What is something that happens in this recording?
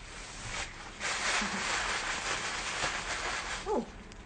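Fabric rustles close by.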